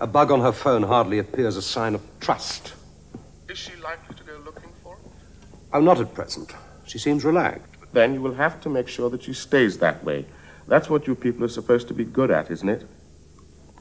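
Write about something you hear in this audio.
A man speaks calmly on a phone, close by.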